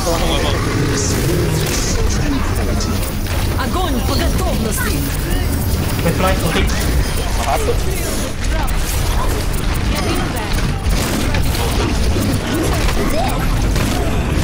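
An energy beam weapon hums and crackles as it fires.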